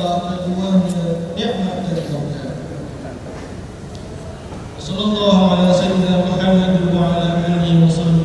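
A man chants in long, held notes through a loudspeaker in a large echoing hall.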